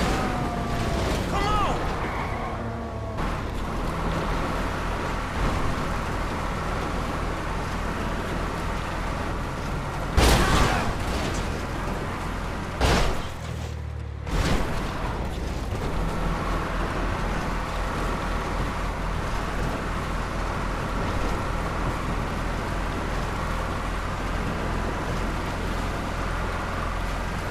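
A car engine roars steadily as the car speeds along a road.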